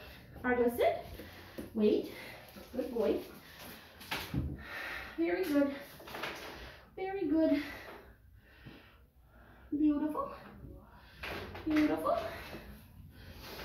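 A dog howls and yowls close by.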